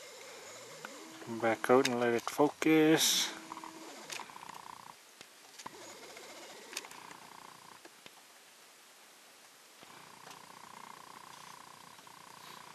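A bear scrapes and digs through crunching snow.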